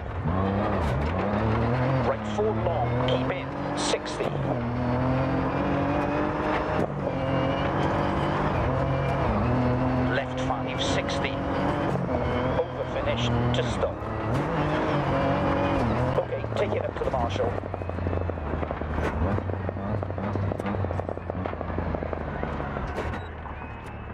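A rally car engine roars and revs hard, rising and falling in pitch with gear changes.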